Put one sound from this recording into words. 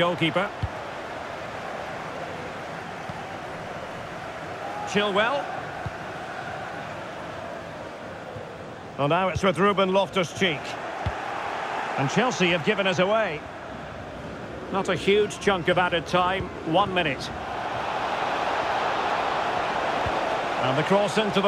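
A large stadium crowd murmurs steadily in the background.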